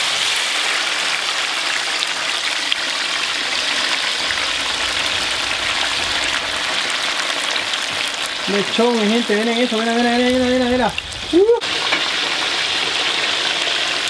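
Liquid simmers and bubbles in a pan.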